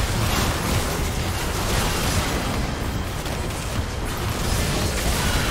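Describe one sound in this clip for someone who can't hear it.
Magic spells whoosh and burst.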